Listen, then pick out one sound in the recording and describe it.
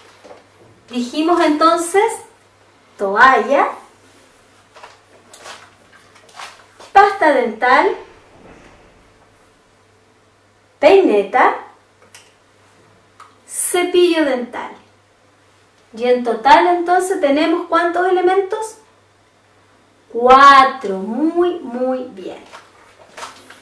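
A woman speaks clearly and with animation, close to a microphone, in short bursts with pauses.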